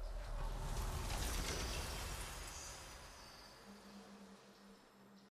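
A triumphant victory fanfare swells and fades.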